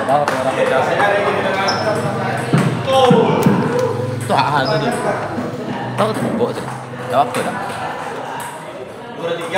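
A table tennis ball clicks against paddles and the table.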